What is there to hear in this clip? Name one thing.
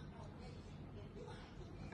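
Juice pours into a glass.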